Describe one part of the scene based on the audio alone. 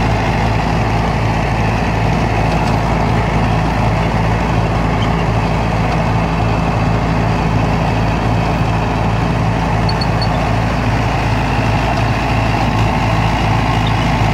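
A rotary tiller churns through dry soil and straw.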